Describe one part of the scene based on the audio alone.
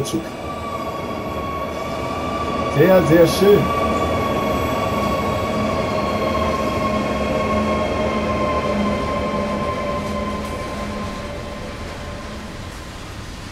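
An electric locomotive hums steadily as it passes close by, then fades.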